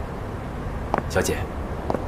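A young man speaks briefly and calmly.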